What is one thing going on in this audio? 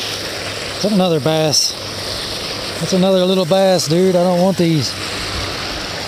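A hooked fish splashes at the water's surface.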